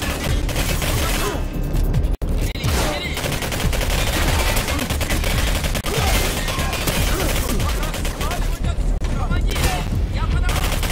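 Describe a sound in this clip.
An automatic rifle fires rapid bursts of gunshots.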